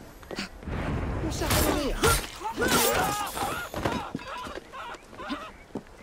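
Blades slash and bodies thud in a quick fight.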